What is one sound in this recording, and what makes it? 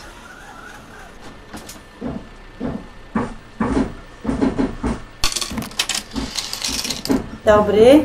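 Footsteps thud on a bus floor as passengers board.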